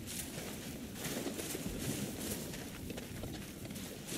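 Shallow water splashes underfoot.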